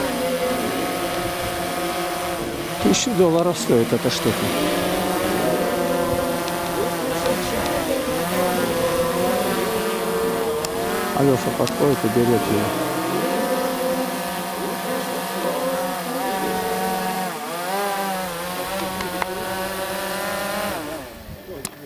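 A drone's propellers buzz and whine steadily overhead, shifting in pitch.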